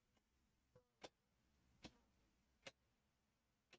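Trading cards slide and tap softly in hands.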